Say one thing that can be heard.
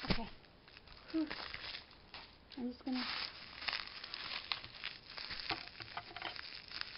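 Plastic bubble wrap crinkles and rustles up close.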